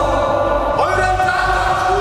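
A young man shouts orders at a group.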